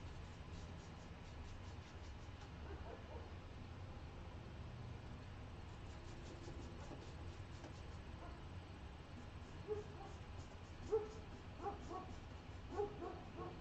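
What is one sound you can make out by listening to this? A paintbrush brushes softly against canvas.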